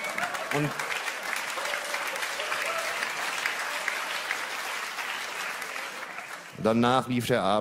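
An audience applauds and cheers in a large hall.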